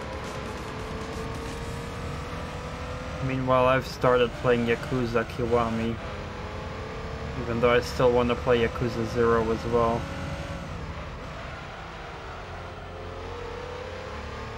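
A racing car engine drones steadily.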